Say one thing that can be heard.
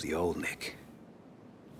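A man speaks in a tense, low voice up close.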